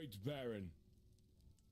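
A man speaks calmly and formally.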